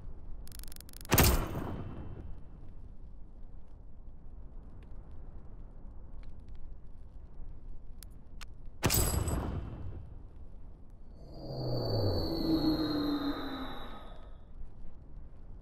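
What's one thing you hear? Game menu sounds swoosh and chime.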